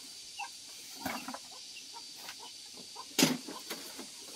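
A hatchet strikes wood with sharp knocks.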